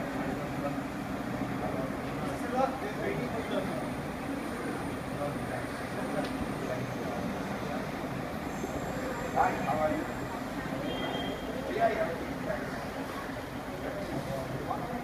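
Several men talk and murmur nearby in a group.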